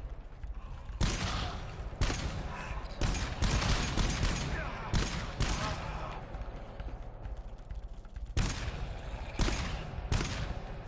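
Automatic gunfire rattles in rapid, loud bursts.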